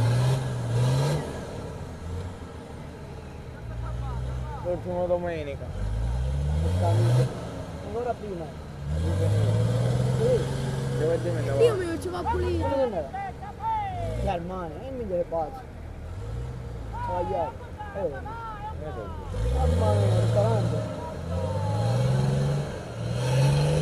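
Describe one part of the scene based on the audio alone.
An off-road engine revs hard and labours, rising and falling in bursts.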